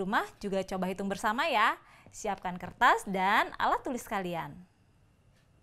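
A young woman speaks brightly and clearly, close by.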